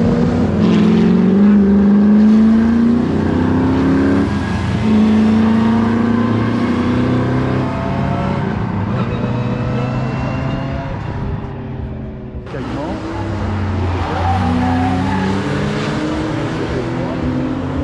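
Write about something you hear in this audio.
A racing car engine whines and revs nearby, climbing in pitch again and again.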